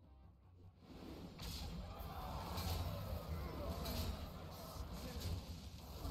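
Game battle sound effects clash, thump and crackle.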